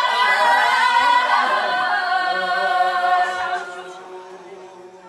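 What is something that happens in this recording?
A woman sings a long, wavering melody nearby that slowly fades.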